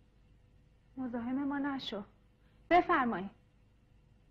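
A woman speaks sharply, close by.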